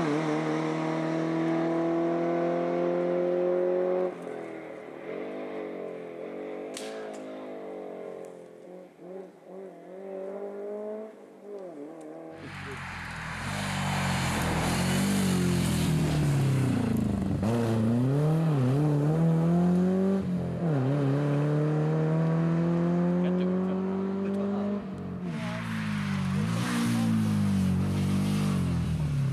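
A rally car engine revs hard and shifts gears, changing pitch as the car passes.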